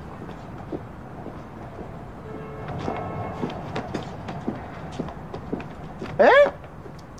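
Footsteps tap slowly on pavement outdoors.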